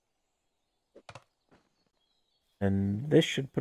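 Footsteps rustle softly through undergrowth.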